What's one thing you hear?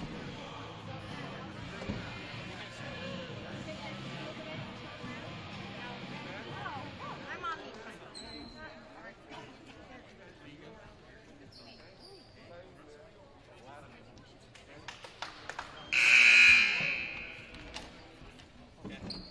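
Voices of players and spectators murmur and call out in a large echoing gym.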